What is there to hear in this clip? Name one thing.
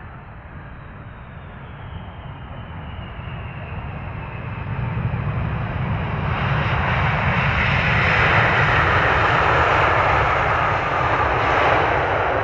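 Jet engines roar loudly, growing louder as an airliner passes close by.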